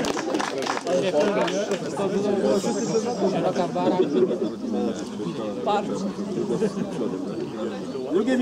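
A man announces loudly to a small crowd outdoors.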